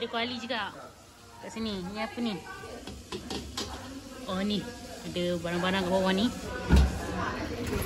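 A plastic storage box scrapes as it slides out of a cupboard.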